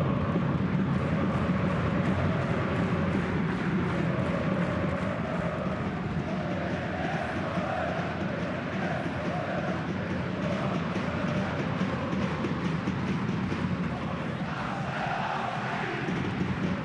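A large stadium crowd chants and roars steadily outdoors.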